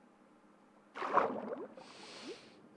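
Water splashes as someone jumps in.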